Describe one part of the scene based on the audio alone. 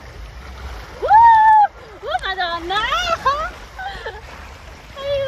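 A young woman talks excitedly close by.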